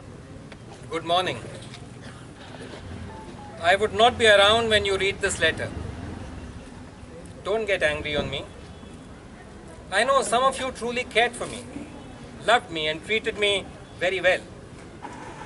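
An elderly man reads aloud outdoors, in a slow, measured voice with pauses.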